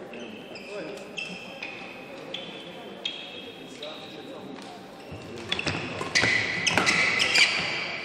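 Rackets smack a shuttlecock back and forth in quick sharp hits.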